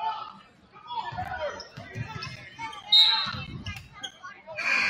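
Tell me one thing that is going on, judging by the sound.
A basketball bounces with dull thuds on the court.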